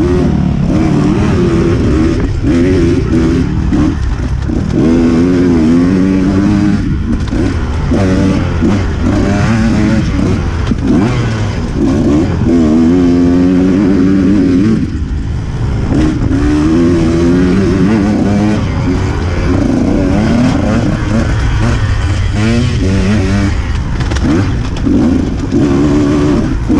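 A dirt bike engine revs up and down, loud and close.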